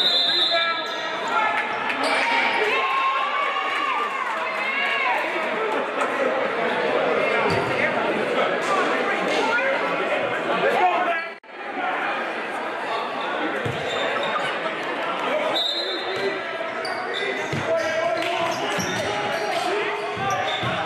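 A crowd of spectators cheers and shouts in a large echoing gym.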